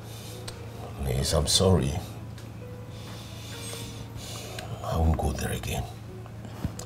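An elderly man speaks slowly in a deep voice, close by.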